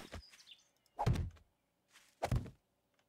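A wooden spike trap thuds into place.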